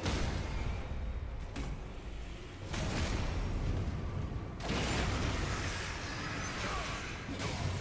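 A huge beast's limbs crash and thud on stone.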